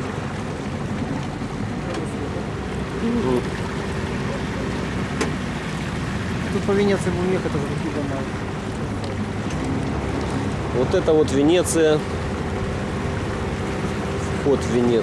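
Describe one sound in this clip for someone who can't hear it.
Water laps gently.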